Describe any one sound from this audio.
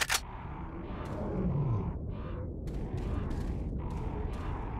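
Footsteps thud on dirt.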